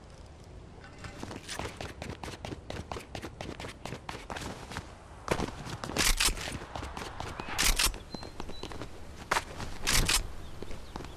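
Footsteps patter quickly on pavement as a game character runs.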